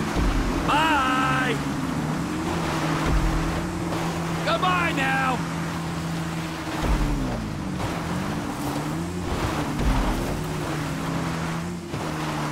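Motorbike engines drone and rev steadily, rising and falling in pitch.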